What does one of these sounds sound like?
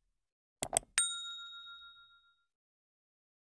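A small bell chimes and slowly rings out.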